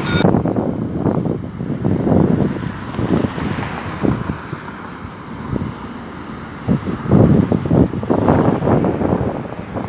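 A tram approaches and rolls to a stop.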